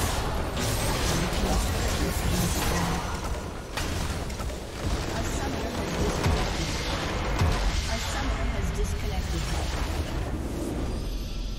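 Game spell effects crash and whoosh loudly in a busy battle.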